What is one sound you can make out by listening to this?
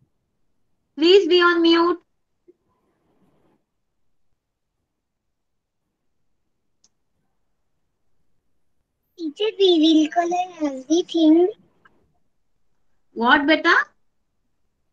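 A young girl speaks in short bursts through an online call.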